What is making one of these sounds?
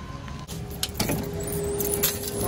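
A glass door swings open.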